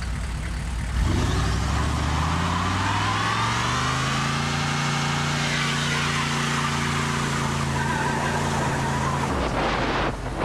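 A truck engine revs up loudly and holds a high roar.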